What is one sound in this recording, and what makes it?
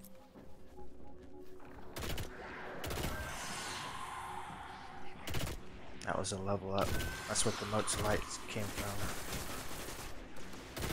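A gun fires repeated shots.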